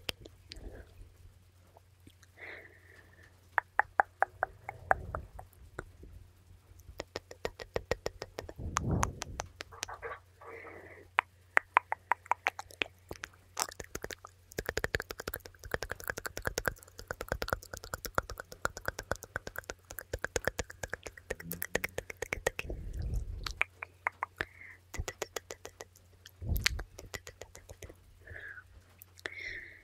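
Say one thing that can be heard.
A young woman whispers softly and close to a microphone.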